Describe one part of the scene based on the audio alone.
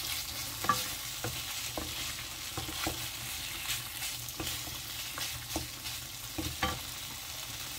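A wooden spatula scrapes and stirs food in a frying pan.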